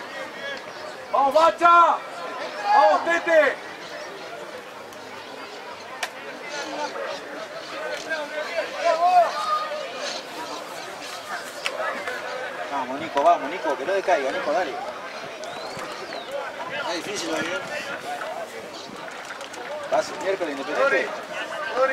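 A crowd of spectators murmurs in the distance.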